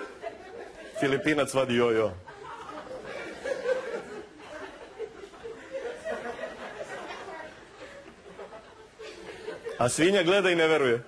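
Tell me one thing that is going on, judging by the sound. A young man raises his voice loudly into a microphone.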